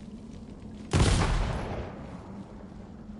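A bomb explodes with a loud, deep boom.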